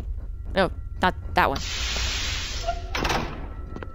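A heavy door slides open.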